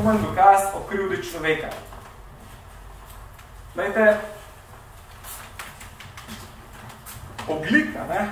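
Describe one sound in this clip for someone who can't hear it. A young man speaks calmly through a face mask, pausing between phrases.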